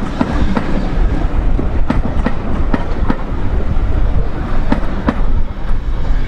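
Train carriages rumble and clatter along the rails close by.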